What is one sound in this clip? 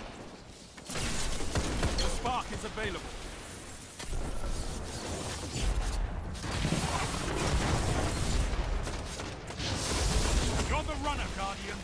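Energy blasts crackle and hum.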